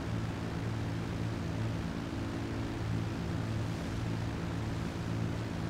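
A propeller plane's engines drone steadily and loudly.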